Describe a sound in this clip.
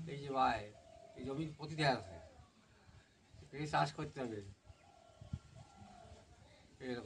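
An elderly man speaks calmly close by, outdoors.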